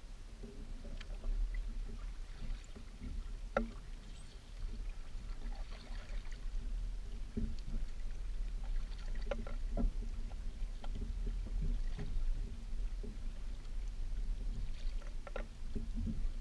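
A paddle knocks against a kayak's hull now and then.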